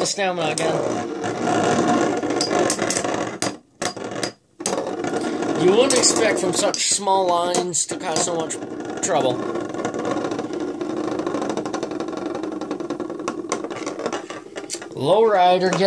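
Spinning tops clack sharply as they collide.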